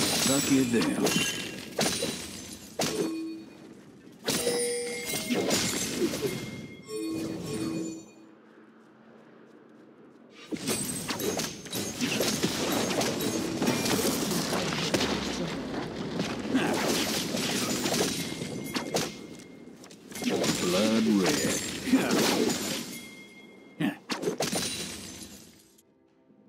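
Magic blasts and weapon hits clash in a fast battle.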